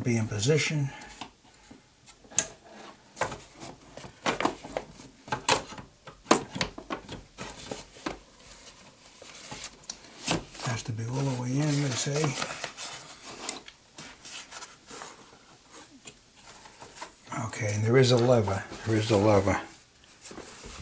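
An embroidery machine stitches with rapid clicking and tapping.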